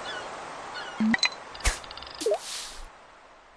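A fishing line is cast with a swish.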